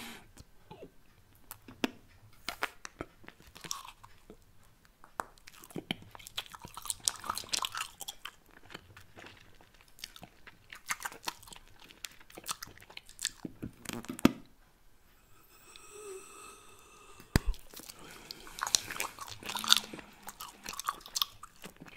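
A man chews gum with wet, sticky smacking sounds close to a microphone.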